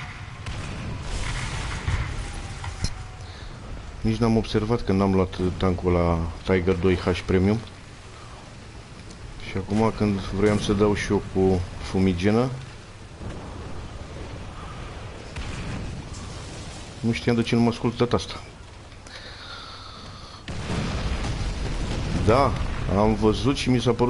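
A shell explodes with a deep boom.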